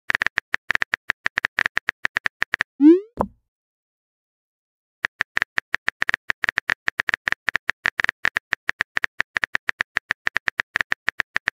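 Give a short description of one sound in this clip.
Rapid electronic blips tick as text types out.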